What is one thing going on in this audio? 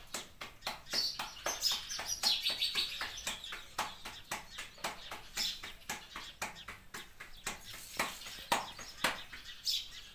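A woman pats dough between her palms with quick, rhythmic slaps.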